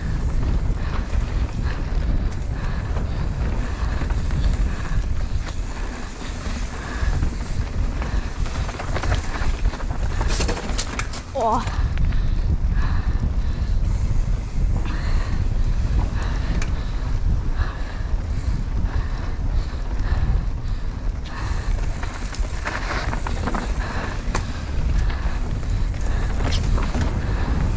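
A bike rattles and clatters over bumps.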